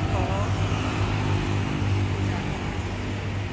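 Motorcycle engines rumble as they pass close by.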